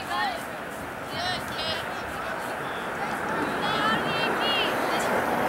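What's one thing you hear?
Young women call out to each other across an open field.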